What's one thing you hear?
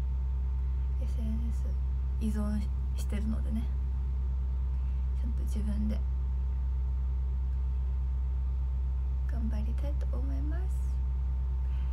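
A young woman speaks softly and calmly, close to a microphone.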